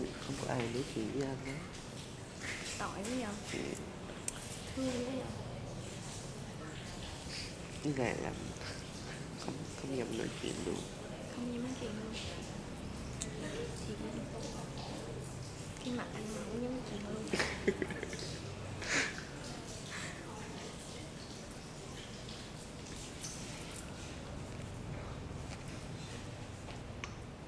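Hands slap and pat on a body.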